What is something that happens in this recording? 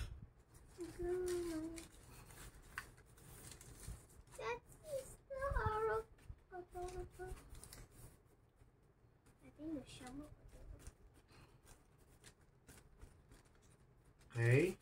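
Plastic sheet crinkles under pressing hands.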